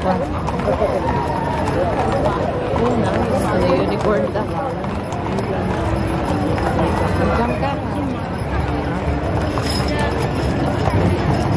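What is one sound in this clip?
Horses' hooves clop on pavement.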